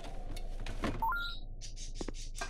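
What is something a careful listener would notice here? A short rising electronic chime plays.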